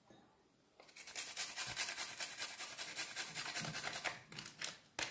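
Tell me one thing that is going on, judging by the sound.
A grater rasps quickly over food.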